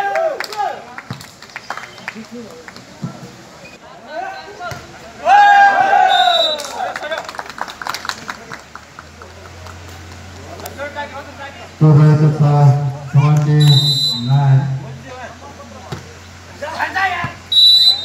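A volleyball is struck with hands with dull thumps.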